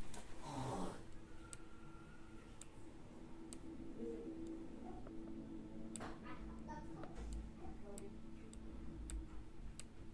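A stylus taps lightly on a touchscreen.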